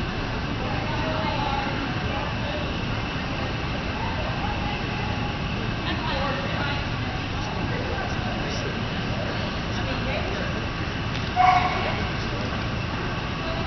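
Distant voices echo faintly across a large indoor hall.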